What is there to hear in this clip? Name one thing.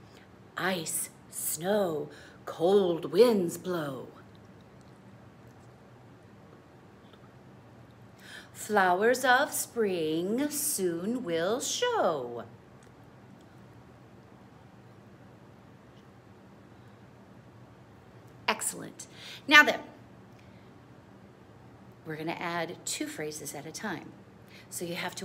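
A middle-aged woman sings short phrases close by, with pauses between them.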